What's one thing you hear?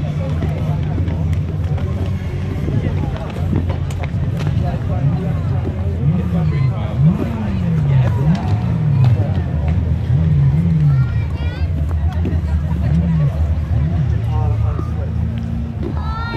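A crowd of adults chatters quietly nearby.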